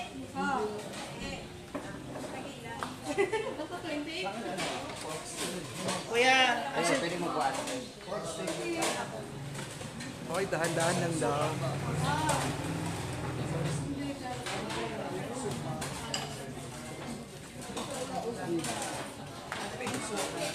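Several adults talk nearby.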